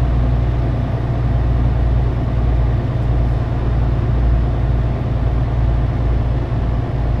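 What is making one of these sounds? A truck engine hums with a steady low drone.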